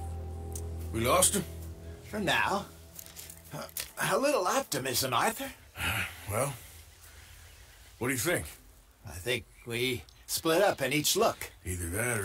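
An elderly man speaks calmly in a gravelly voice.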